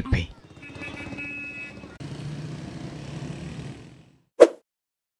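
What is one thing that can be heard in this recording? Motorcycle engines putter by.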